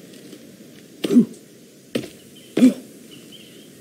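Heavy thuds sound as a person climbs down a rock.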